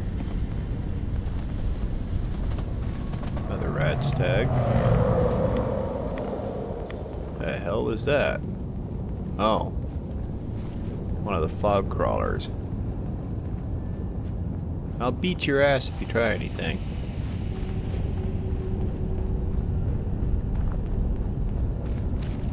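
Footsteps crunch on leaves and dry ground.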